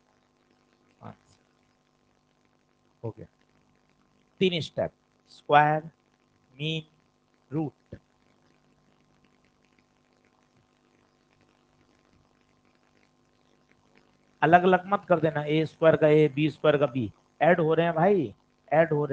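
A man speaks calmly and explains, close to a microphone, with pauses.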